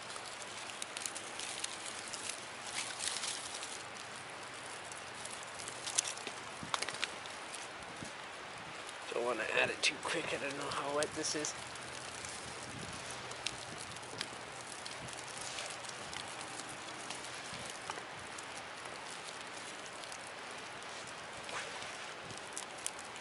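A small fire crackles and pops.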